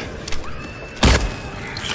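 A gunshot fires with a loud bang.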